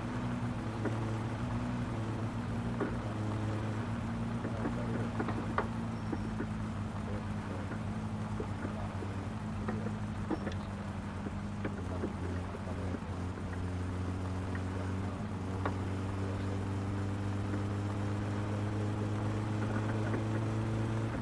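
Tyres crunch and rattle over gravel.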